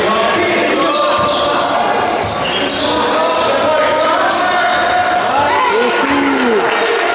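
Spectators murmur and shout in an echoing gym.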